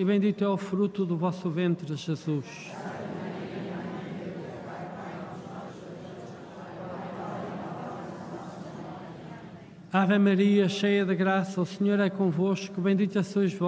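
An elderly man chants through a microphone.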